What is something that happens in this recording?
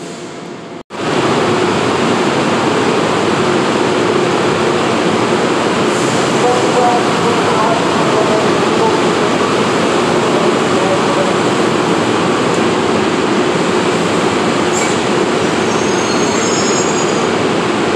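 A train rumbles and roars loudly past in an echoing underground station.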